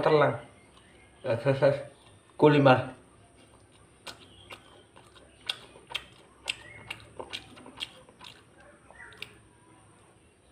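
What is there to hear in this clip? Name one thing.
A young man chews crunchy food.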